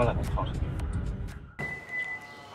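A young man talks quietly on a phone.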